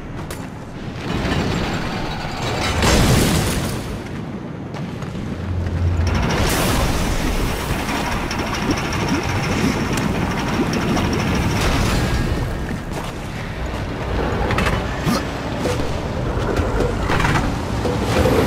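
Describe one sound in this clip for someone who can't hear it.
Lava bubbles and roars steadily nearby.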